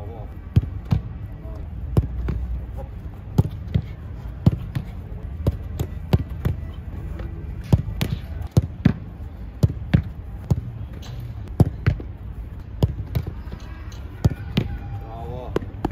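Balls thud off a goalkeeper's gloves and bounce on the ground.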